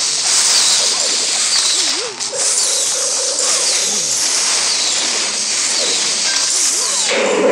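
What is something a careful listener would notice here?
Battle sound effects from a mobile strategy game play.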